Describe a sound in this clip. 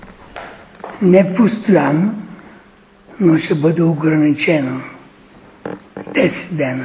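An elderly man speaks with animation to a room, in bursts with pauses.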